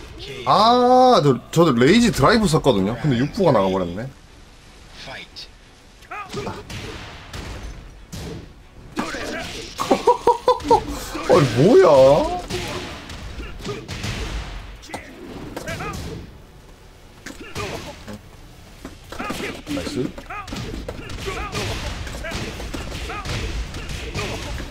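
Punches and kicks land with sharp, quick thuds.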